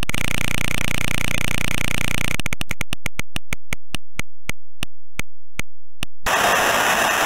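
A prize wheel spins with rapid ticking clicks that slow down and stop.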